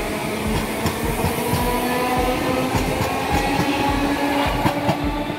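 A train's motors whine with a steady tone.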